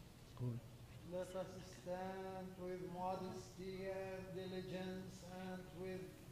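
A man chants in a steady sung voice through a microphone in a large echoing hall.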